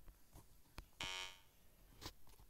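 A short electronic synth note sounds once.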